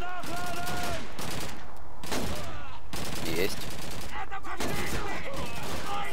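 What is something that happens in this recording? A bolt-action rifle fires single shots.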